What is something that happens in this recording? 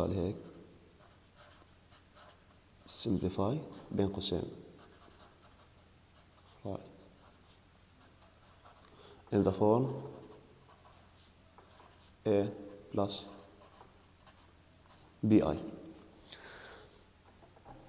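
A marker squeaks and scratches across a board.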